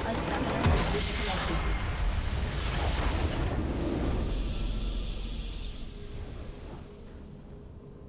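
A loud blast booms and rumbles, then slowly dies away.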